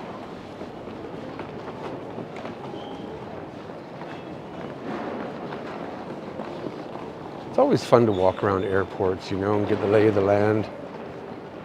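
A suitcase on wheels rolls across a hard floor.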